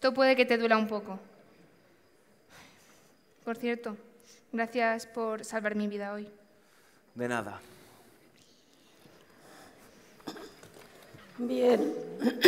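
A young woman speaks dramatically over a loudspeaker.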